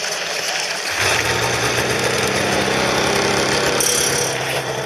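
A snowmobile engine idles with a low hum.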